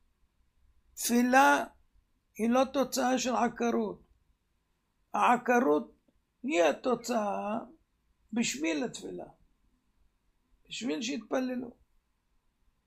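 An elderly man speaks calmly and slowly, close to a microphone, with pauses between phrases.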